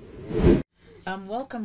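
A woman speaks briefly close to a microphone.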